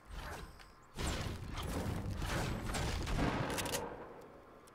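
A pickaxe strikes wooden planks with sharp thuds.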